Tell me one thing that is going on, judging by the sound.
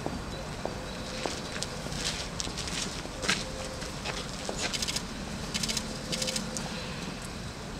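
Footsteps scuff on paving outdoors.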